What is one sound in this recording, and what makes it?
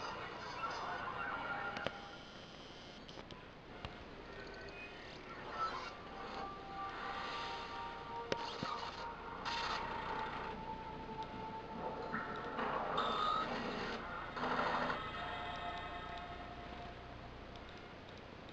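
Electronic music with whooshing effects plays through a television speaker.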